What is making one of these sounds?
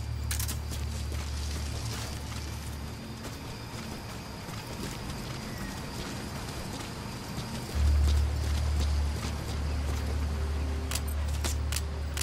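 Footsteps crunch through brush and over rocks.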